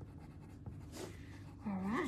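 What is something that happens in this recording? A pen scratches lightly on paper.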